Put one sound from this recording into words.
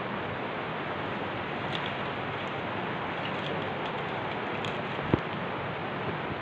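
Dry leaves rustle and crackle close by.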